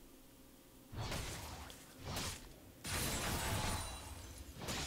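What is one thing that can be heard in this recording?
Video game combat sound effects clash and burst.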